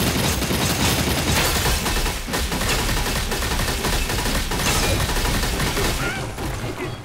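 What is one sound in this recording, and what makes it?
Weapons clash and strike in fast combat.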